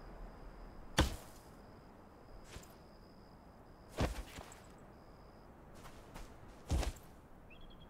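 Wooden building pieces knock into place with short thuds.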